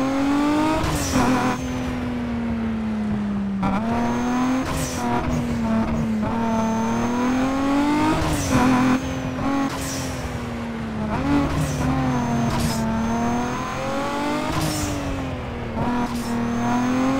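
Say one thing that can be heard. Exhaust pops and crackles between gear changes.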